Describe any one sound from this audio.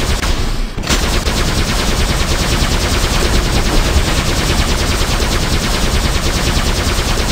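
A robot's rocket thrusters roar steadily.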